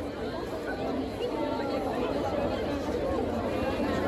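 A crowd murmurs and chatters.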